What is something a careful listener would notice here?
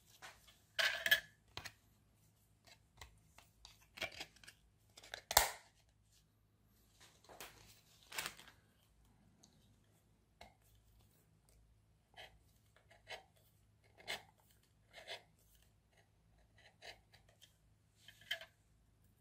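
Plastic discs clatter and knock on a tabletop.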